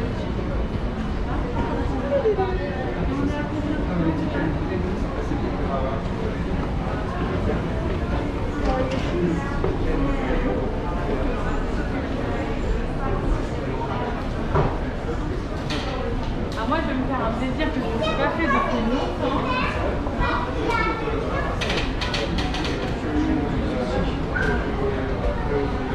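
Adult men and women chat with each other nearby.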